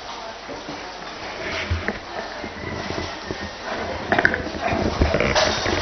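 People rustle and shuffle as they bow to the floor.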